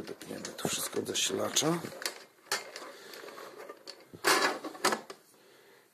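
A metal plate clicks and knocks against metal.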